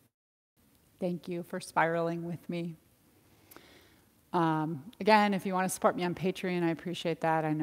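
A woman speaks calmly and gently, close to a microphone.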